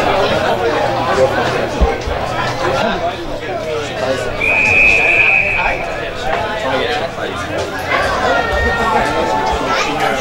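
Men shout and call out outdoors across an open field.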